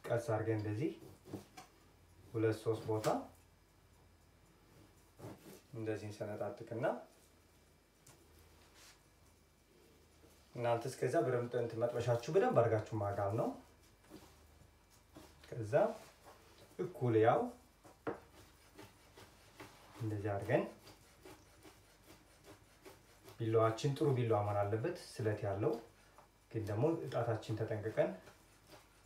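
A man talks calmly, close by, in short bursts.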